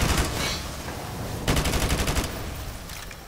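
A fiery explosion roars nearby.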